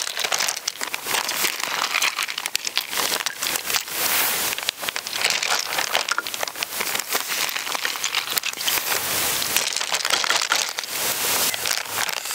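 Ice cubes clink inside a plastic bag.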